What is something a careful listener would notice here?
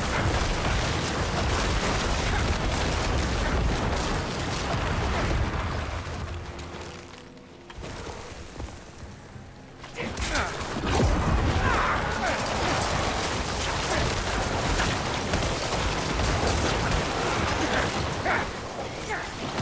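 Spells crackle and blast in a fast, noisy battle.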